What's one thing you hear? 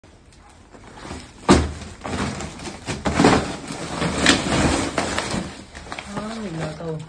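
A plastic sack rustles and crinkles as it is handled.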